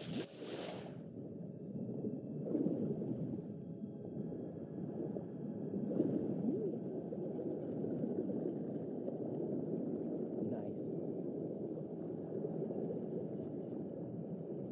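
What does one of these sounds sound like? Muffled underwater rumbling and bubbling surrounds the diver.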